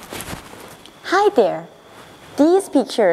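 A young woman speaks cheerfully and close to the microphone.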